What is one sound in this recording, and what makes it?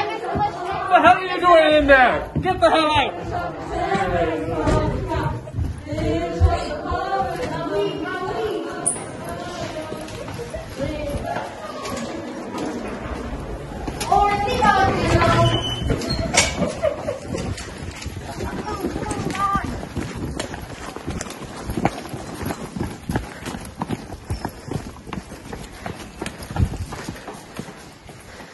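Footsteps patter quickly on hard floors.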